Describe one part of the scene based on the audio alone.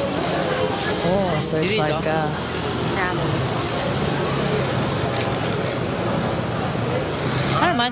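Young women talk with animation close by.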